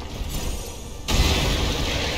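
A fiery explosion bursts with a loud boom.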